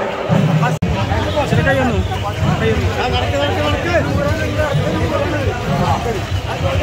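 A crowd of men shout and chant loudly nearby.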